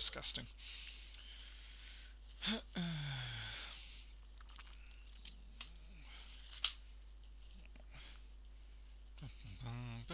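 Latex gloves rustle and snap as a man pulls them on.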